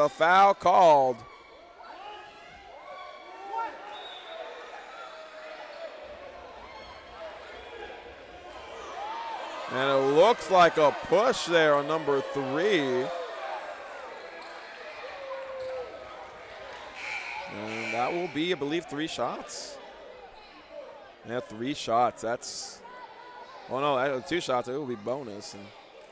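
A crowd murmurs and chatters in an echoing gym.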